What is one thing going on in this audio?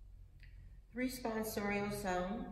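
An elderly woman speaks calmly into a microphone in an echoing room.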